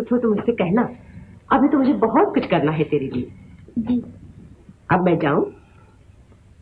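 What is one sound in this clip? An older woman speaks softly and tenderly.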